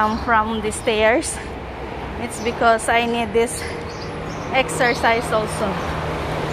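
A woman speaks close to the microphone through a face mask.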